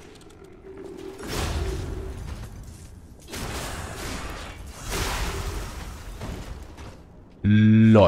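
Sword blows land with heavy whooshing bursts.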